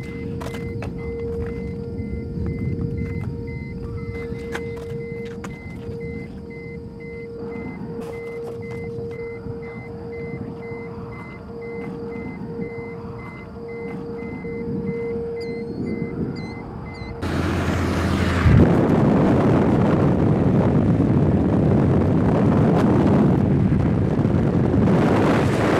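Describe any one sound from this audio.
Wind blows outdoors, growing much louder and rougher partway through.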